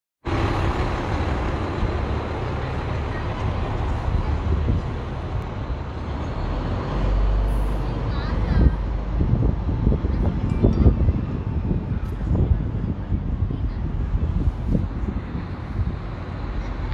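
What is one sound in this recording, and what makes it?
Wind buffets outdoors with a steady rumble.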